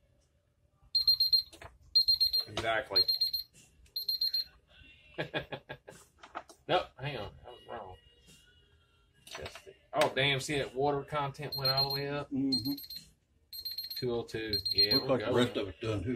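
A digital thermometer beeps in short repeated bursts.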